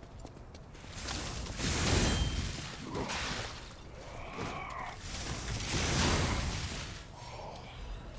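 Blades clash and flames roar in a loud fight.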